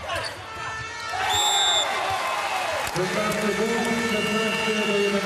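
A large crowd cheers and roars in an echoing hall.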